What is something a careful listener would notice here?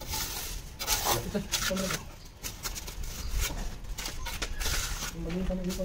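A trowel scrapes and spreads wet cement mortar.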